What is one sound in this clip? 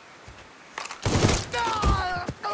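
Rifle shots ring out in quick bursts.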